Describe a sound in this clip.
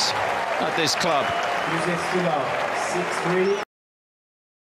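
A crowd cheers and murmurs loudly nearby.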